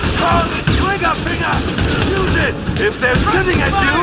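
Rifles fire in short bursts close by.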